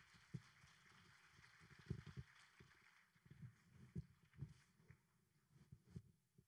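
Boots stamp and thud on a wooden stage.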